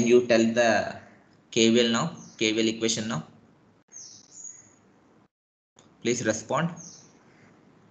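A young man speaks calmly into a microphone, as if lecturing over an online call.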